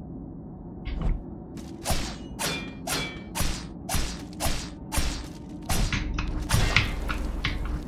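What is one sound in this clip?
Sharp sword strikes and hits land in quick succession.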